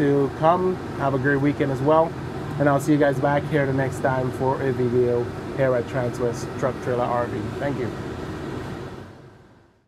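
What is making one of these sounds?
A man talks calmly and clearly, close to a microphone.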